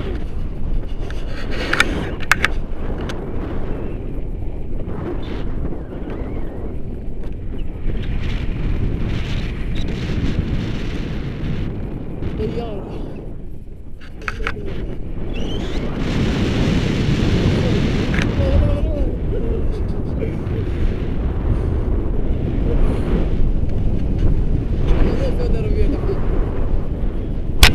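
Strong wind rushes and buffets against the microphone.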